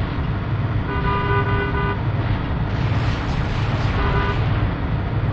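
A bright electronic chime rings as an item is collected.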